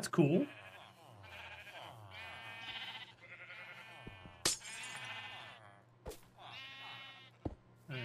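Sheep bleat repeatedly.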